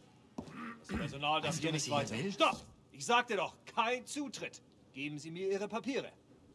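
A man speaks sternly and loudly.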